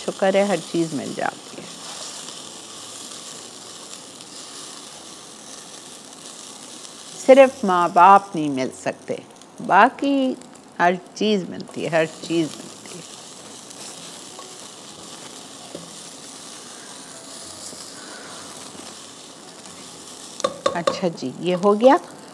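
A spoon scrapes and stirs in a pot.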